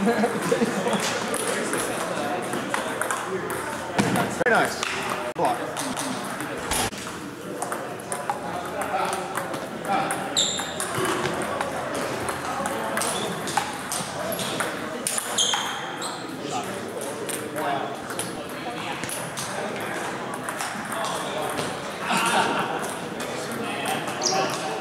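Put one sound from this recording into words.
Many people chatter in a large echoing hall.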